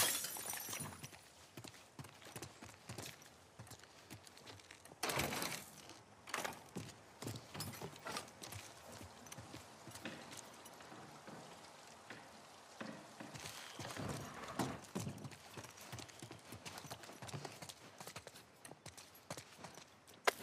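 Footsteps patter across a hard floor.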